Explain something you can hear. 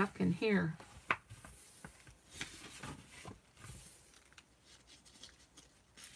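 Paper pages rustle as a book's pages are turned.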